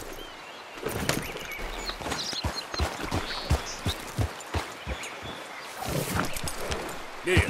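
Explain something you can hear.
A horse's hooves clop steadily on the ground.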